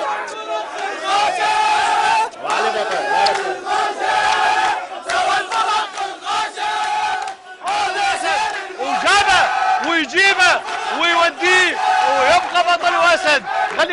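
Men clap their hands in rhythm.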